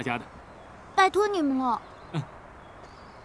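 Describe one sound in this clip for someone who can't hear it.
A child speaks softly, close by.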